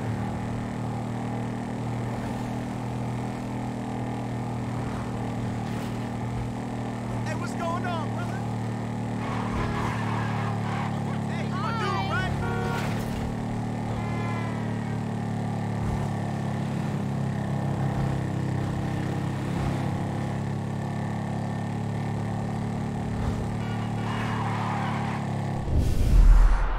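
A motorcycle engine drones steadily as it rides along.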